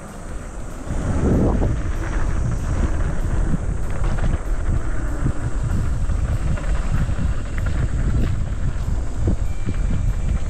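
Wind rumbles loudly against a microphone.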